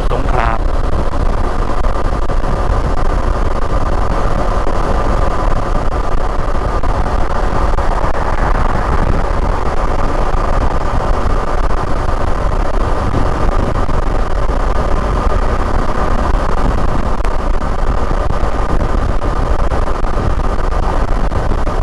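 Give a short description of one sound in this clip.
A motorcycle engine hums steadily at speed.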